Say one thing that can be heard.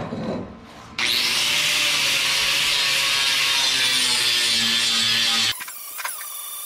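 An electric welder crackles and hisses steadily.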